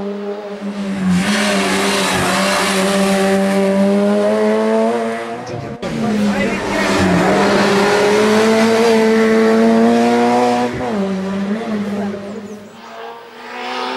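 A rally car engine roars loudly at high revs, rising and dropping in pitch as it shifts gears.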